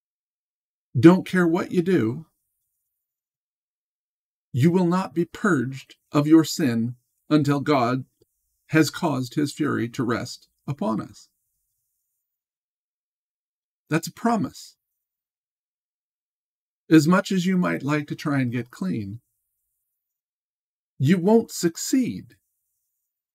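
A middle-aged man speaks calmly and deliberately into a close microphone, with long pauses.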